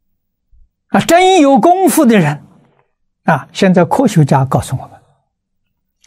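An elderly man speaks calmly and warmly into a close microphone, in short phrases.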